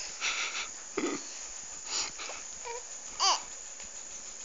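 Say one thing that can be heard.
A baby coos and babbles softly close by.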